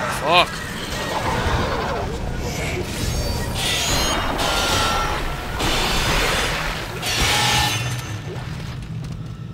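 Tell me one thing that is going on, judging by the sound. A creature shrieks and snarls as it lunges.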